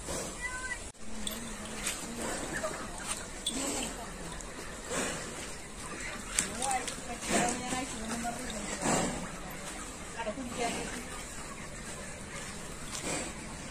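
A water buffalo shifts and sloshes in a water tank.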